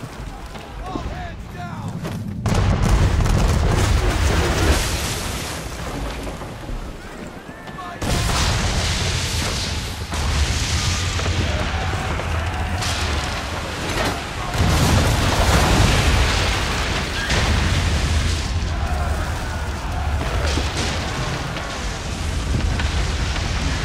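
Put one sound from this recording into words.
Wind and sea rush loudly past a sailing ship.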